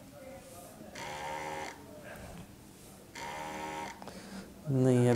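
A small electric soap dispenser whirs briefly as it pumps.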